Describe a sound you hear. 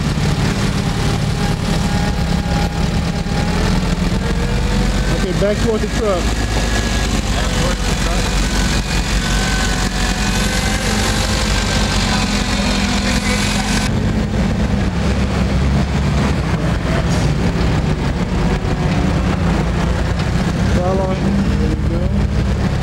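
A forklift engine runs with a low rumble.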